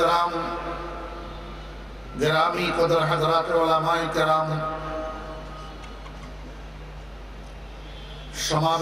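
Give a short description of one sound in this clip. An elderly man chants loudly through a microphone and loudspeakers, with a ringing echo.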